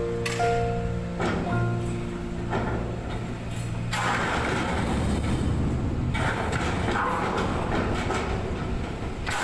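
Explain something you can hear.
Metal clanks as a crane spreader settles onto a shipping container.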